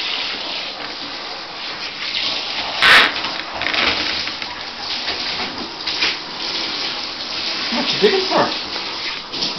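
A shower sprays water steadily onto a dog.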